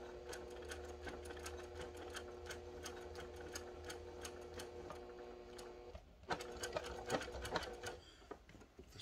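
A sewing machine hums and rattles as it stitches rapidly.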